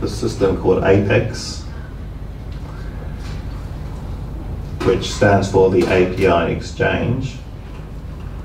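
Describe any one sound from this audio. A man speaks calmly into a microphone, heard through a loudspeaker in a large room.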